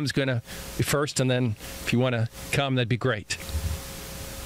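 A man speaks calmly into a microphone over a loudspeaker, outdoors.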